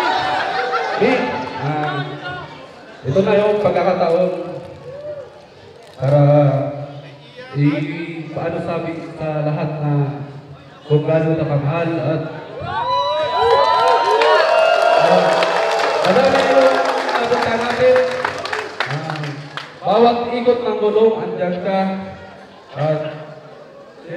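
A man speaks loudly through a microphone and a loudspeaker, outdoors.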